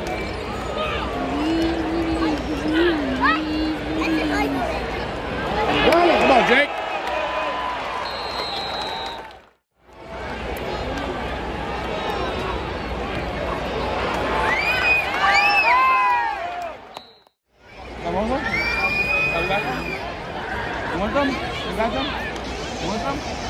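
A large stadium crowd cheers and shouts loudly outdoors.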